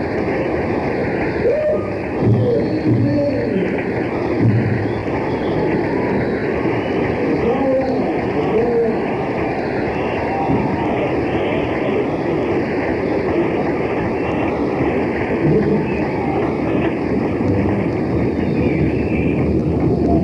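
A rock band plays live with electric guitars, bass and drums.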